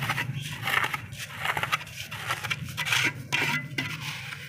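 A hand scoops gravel with a scraping crunch.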